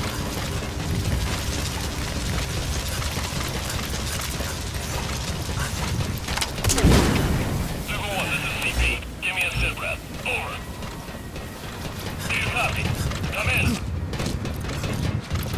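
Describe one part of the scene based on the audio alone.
Footsteps clatter on metal stairs and decking.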